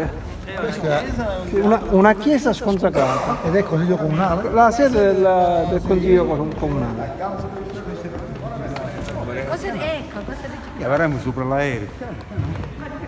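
A middle-aged man talks with animation close by, in a large echoing hall.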